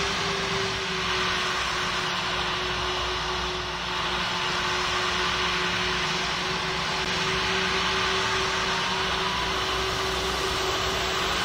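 Jet engines whine steadily as an airliner rolls along the ground.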